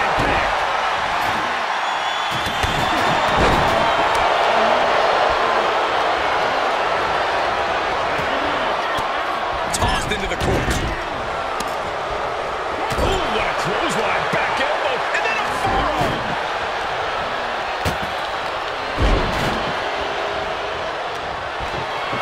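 A large crowd roars steadily in a big echoing arena.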